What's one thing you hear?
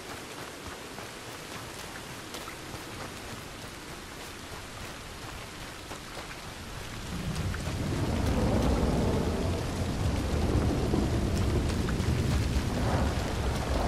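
Footsteps run over dry ground.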